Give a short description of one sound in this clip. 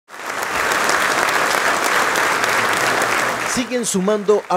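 A crowd applauds and cheers in a large room.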